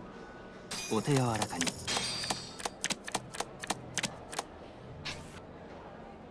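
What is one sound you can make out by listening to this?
Playing cards snap quickly onto a table one after another.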